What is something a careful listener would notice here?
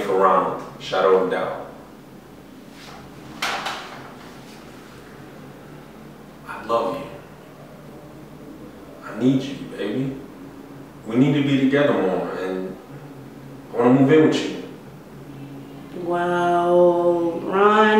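A young man speaks calmly and clearly, close by, in short bursts with pauses.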